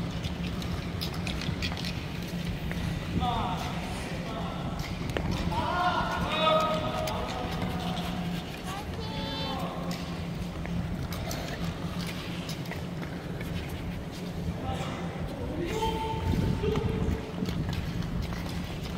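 Skate blades scrape and hiss across ice in a large echoing hall.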